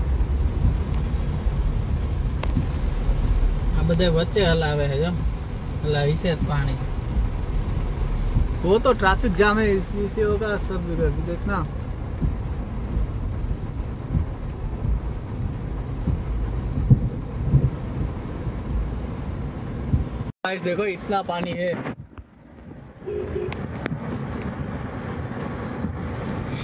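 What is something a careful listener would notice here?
Heavy rain drums on a car's roof and windshield.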